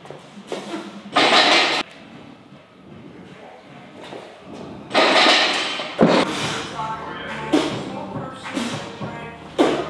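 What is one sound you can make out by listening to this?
A man exhales forcefully while lifting a heavy weight.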